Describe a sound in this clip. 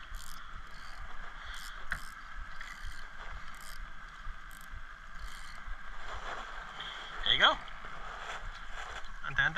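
Water laps against the side of a small boat.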